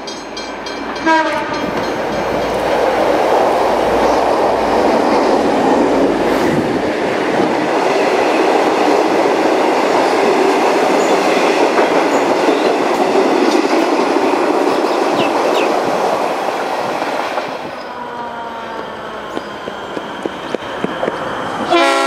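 A train horn blares briefly.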